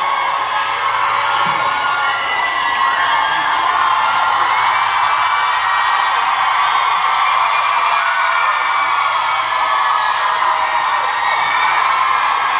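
A large crowd of young women screams and cheers loudly in a big hall.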